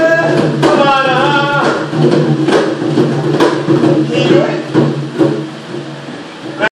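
Several voices sing together in an echoing room.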